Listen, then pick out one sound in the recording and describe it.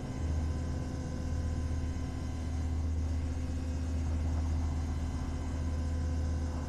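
Jet engines drone steadily in the distance.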